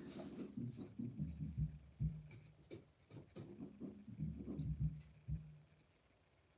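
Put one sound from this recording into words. A hand rubs along a wooden board.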